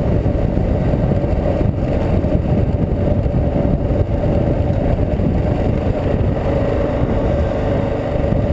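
Tyres crunch and rumble over loose gravel.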